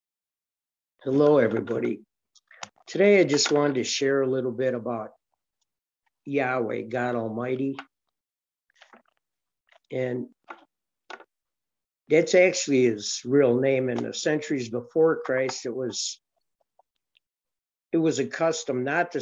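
An older man talks calmly and close to a microphone, with pauses.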